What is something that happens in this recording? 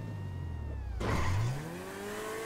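A car lands hard with a heavy thud.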